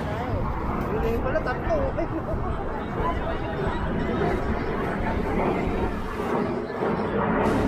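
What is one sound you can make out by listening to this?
A busy outdoor crowd murmurs and chatters all around.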